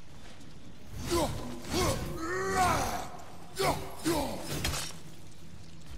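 A fiery magical growth shrieks in rising and falling wails.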